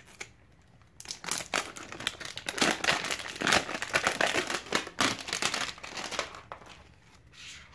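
Plastic wrapping crinkles and rustles loudly.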